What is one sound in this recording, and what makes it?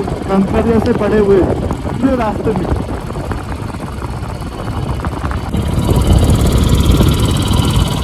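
A motorcycle engine rumbles steadily while riding.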